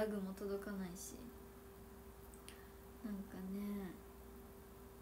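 A young woman speaks softly and playfully, close to a microphone.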